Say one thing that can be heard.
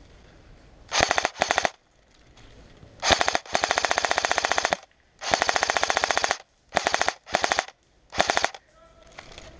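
An airsoft rifle fires in rapid bursts.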